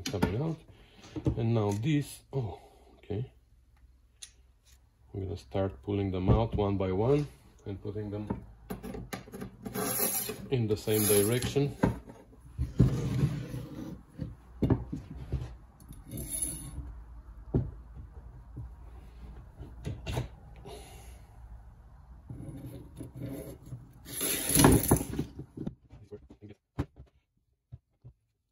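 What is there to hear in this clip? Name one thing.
Metal parts clink and knock together.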